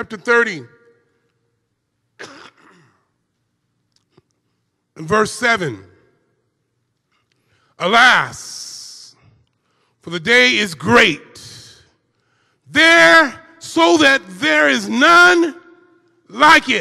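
An elderly man preaches with fervour through a microphone, in bursts with pauses.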